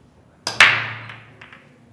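Snooker balls crack loudly as a break scatters the pack.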